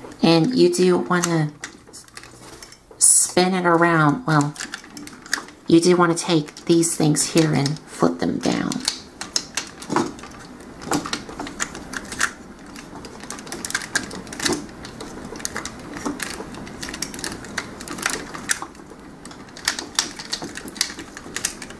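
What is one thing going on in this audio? Plastic parts of a toy click and snap as they are twisted into place.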